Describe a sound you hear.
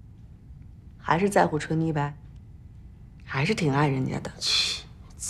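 A young woman speaks calmly and earnestly nearby.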